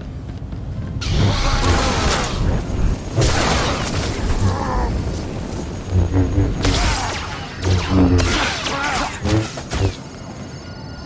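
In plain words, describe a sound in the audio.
Energy blasts fire and explode in a fight.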